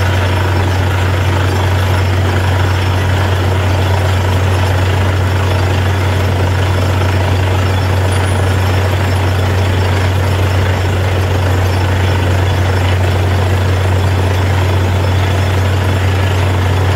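Compressed air blasts dust out of a borehole with a loud rushing hiss.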